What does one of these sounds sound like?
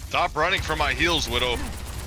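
A game weapon fires an energy beam with a sharp buzzing crackle.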